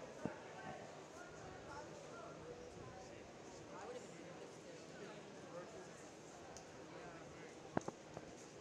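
A crowd of swimmers and spectators chatters in a large echoing hall.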